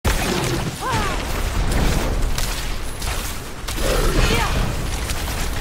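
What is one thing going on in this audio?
Magic blasts and weapon strikes crash and whoosh in quick succession.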